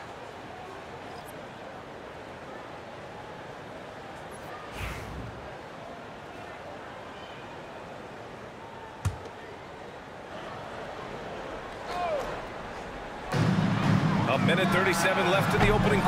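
A large arena crowd murmurs steadily.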